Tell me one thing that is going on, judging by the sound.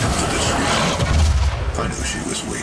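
A heavy gun fires in loud blasts.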